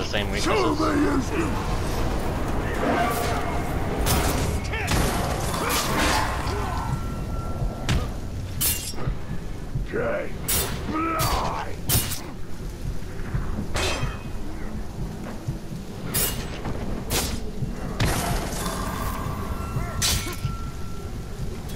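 Blades clash and strike in quick, sharp blows.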